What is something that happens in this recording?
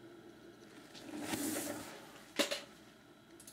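A cardboard box rustles and knocks briefly.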